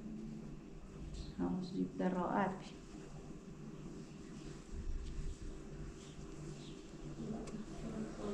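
Fabric rustles as a woman handles and folds it.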